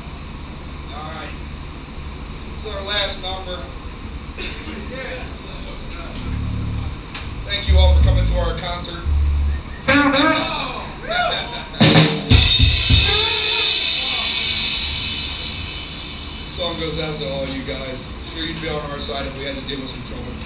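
A man speaks into a microphone through loudspeakers in an echoing hall.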